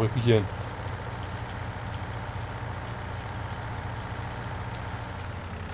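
A tractor engine hums steadily at a low pitch.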